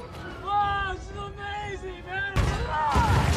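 A man speaks with excitement, close by.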